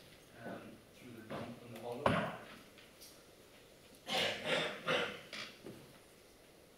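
A middle-aged man speaks calmly, in short bursts.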